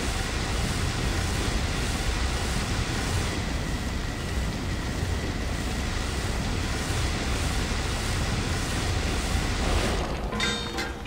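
A fiery beam roars and hisses steadily, then cuts off.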